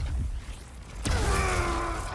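A heavy blow lands with a sharp crack.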